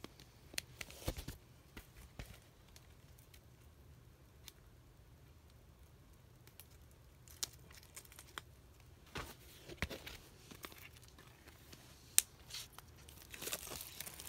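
A record sleeve scrapes and taps lightly.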